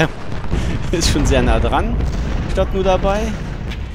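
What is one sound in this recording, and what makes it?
Musket fire crackles.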